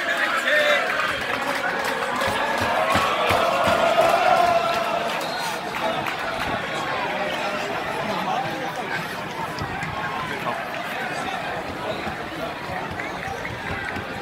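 A crowd murmurs and cheers in the open air.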